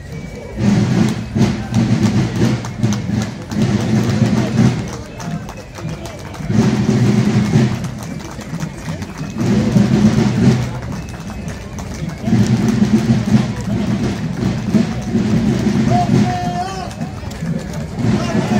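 Boots of a column of marchers tramp on a paved street.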